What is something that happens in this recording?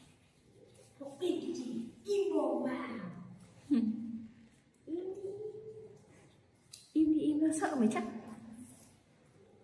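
A young boy speaks with animation close by.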